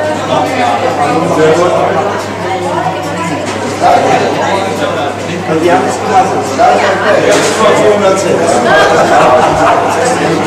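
A crowd of adults chatters all around.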